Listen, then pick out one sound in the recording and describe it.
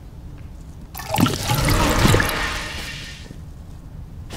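Liquid pours and splashes into a glass beaker.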